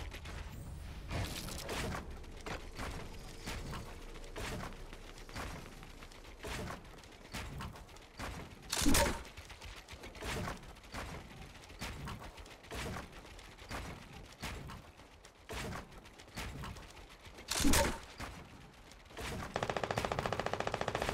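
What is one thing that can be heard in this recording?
Wooden walls and ramps are built with quick repeated thuds.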